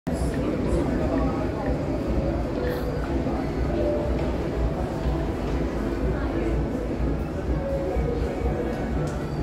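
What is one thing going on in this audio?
A young woman sings into a microphone through a loudspeaker, outdoors.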